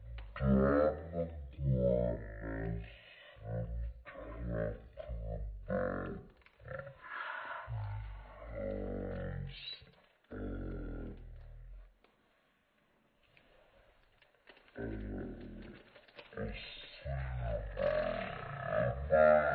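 Plastic film crinkles as it is handled.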